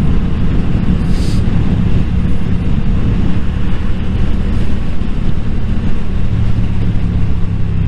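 Wind rushes past loudly.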